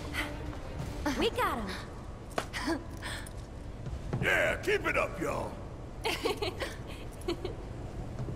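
A young woman speaks excitedly.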